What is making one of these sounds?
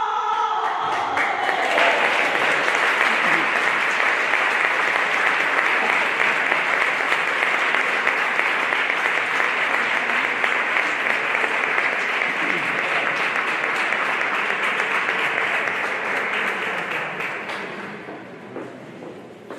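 An audience claps loudly and steadily, then the applause fades.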